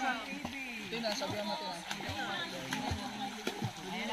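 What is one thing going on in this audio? Water splashes as swimmers move about.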